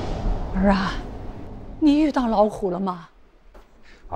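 A woman asks a question in a worried voice.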